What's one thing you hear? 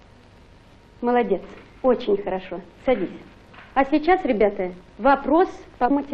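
A woman speaks clearly and calmly.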